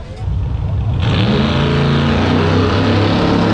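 A race truck engine roars loudly as it approaches.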